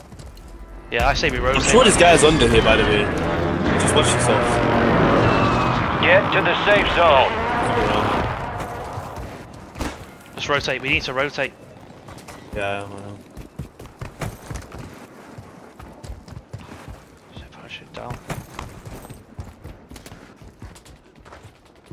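Quick footsteps thud on hard ground and dirt.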